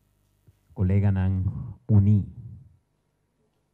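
A man speaks into a microphone in a firm, measured voice.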